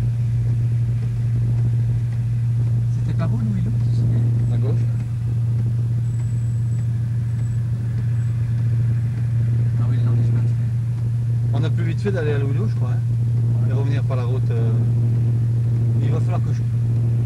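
A large truck engine rumbles steadily close ahead.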